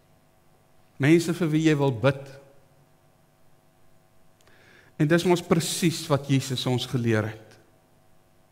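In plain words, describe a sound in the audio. A middle-aged man speaks calmly through a headset microphone in a slightly echoing room.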